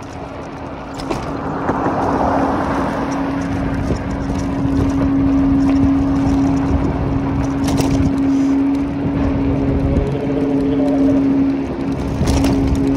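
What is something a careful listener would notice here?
An electric bicycle motor hums steadily.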